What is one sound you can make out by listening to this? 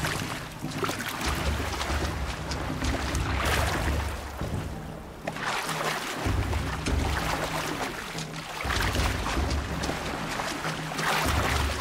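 Water rushes and splashes over rocks nearby.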